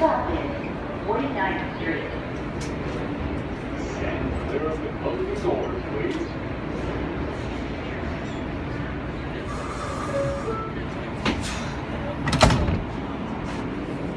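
A subway train rumbles past close by.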